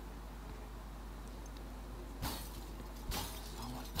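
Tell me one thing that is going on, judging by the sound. A glass cooler door rattles as it is pulled open.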